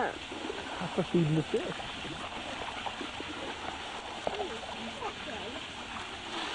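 A dog whines in short high yelps.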